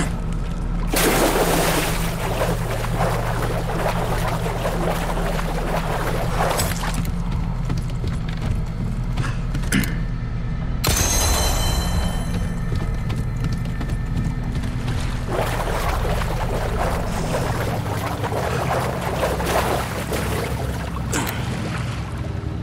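Feet wade and splash through shallow water.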